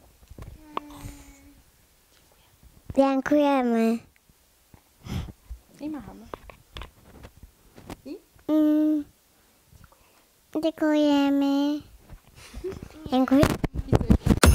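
A young woman speaks softly and cheerfully.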